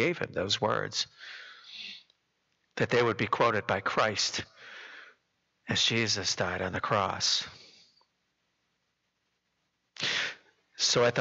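An older man speaks with feeling into a microphone, in a slightly echoing room.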